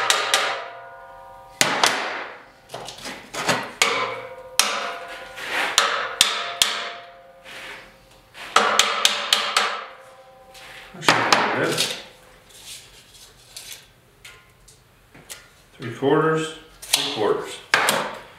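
A hammer strikes a steel bar with sharp, ringing clangs.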